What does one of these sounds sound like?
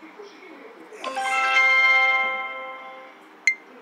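A bright chiming jingle rings out for a win.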